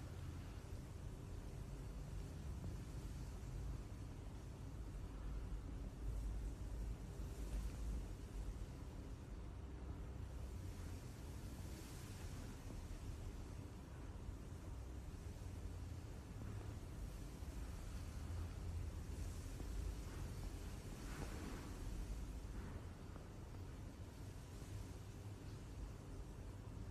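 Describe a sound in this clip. A small animal breathes softly in its sleep.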